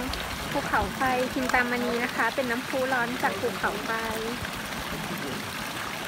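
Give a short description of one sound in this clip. Water trickles from a fountain into a pool.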